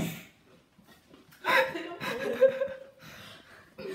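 A second young woman laughs loudly.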